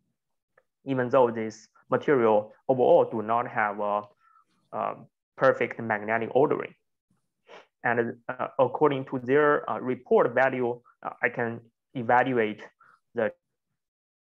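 A man speaks calmly into a microphone, heard as if over an online call.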